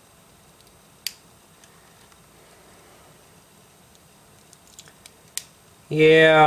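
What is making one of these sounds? Plastic toy bricks click as they are snapped together.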